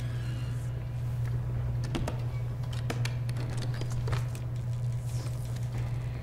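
A heavy chest lid creaks open.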